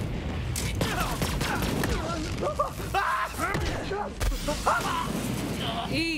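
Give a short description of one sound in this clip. Explosions boom and fire roars.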